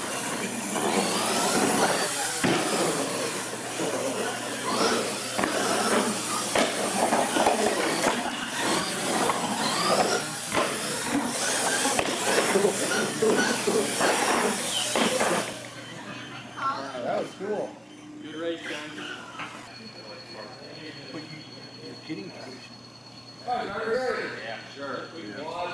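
Small electric motors of toy trucks whine as the trucks race.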